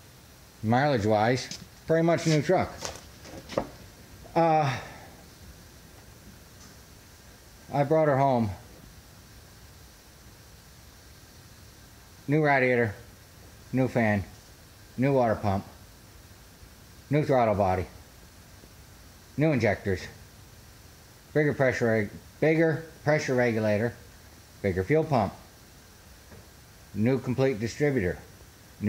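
A middle-aged man speaks close to the microphone in short, animated bursts with pauses.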